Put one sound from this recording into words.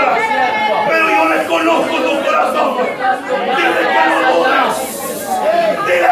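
A man speaks loudly and with fervour.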